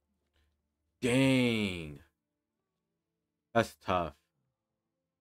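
A young man speaks briefly and with animation, close to a microphone.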